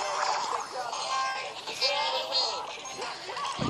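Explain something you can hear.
Video game sound effects chime and clatter as units deploy.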